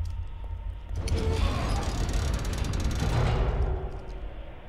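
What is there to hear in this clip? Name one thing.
A heavy metal wheel grinds as it turns.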